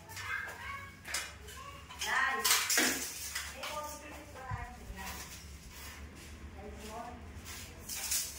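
A metal tape measure rattles and clicks against a wall.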